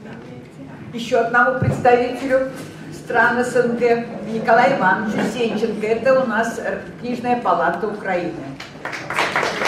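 A middle-aged woman speaks with animation through a microphone.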